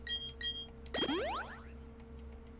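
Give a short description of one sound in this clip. An electronic tone sweeps quickly upward.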